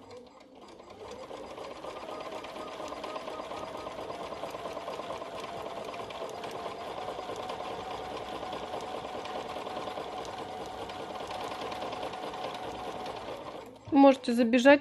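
A sewing machine hums steadily as it stitches.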